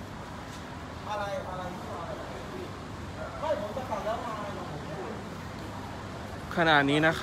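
Several men talk quietly nearby.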